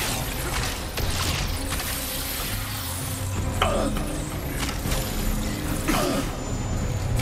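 Energy blasts crackle and boom in repeated bursts.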